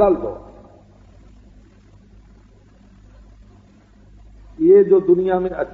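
An elderly man speaks calmly in a steady, measured voice.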